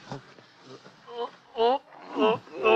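A man groans in pain up close.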